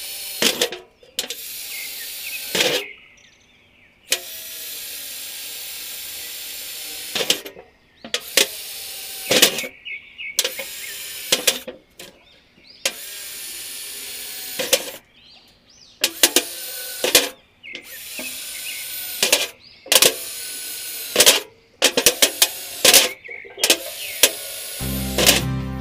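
A cordless drill whirs in short bursts, drilling into sheet metal.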